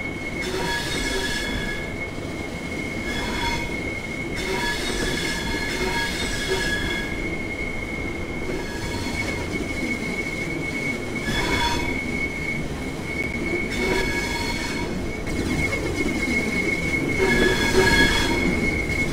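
An electric train's motor whines as it moves.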